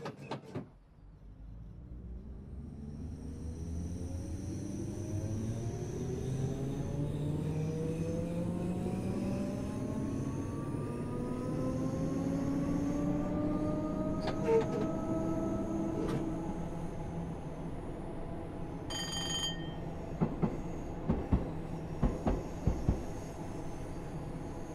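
Train wheels rumble and clack over the rails.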